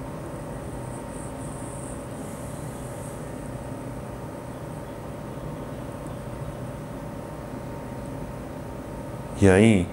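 A man breathes slowly and quietly.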